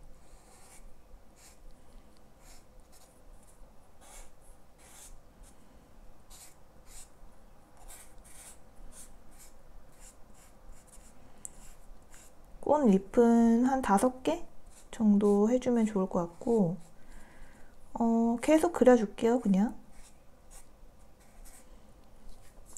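A felt-tip marker squeaks and scratches softly across paper in short strokes.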